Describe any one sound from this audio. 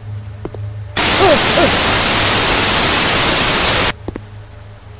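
Loud television static hisses and then cuts off.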